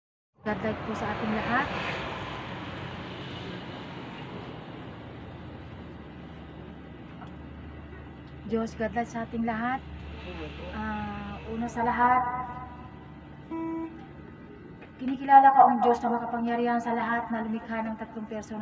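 An elderly woman prays aloud into a microphone, heard through a loudspeaker.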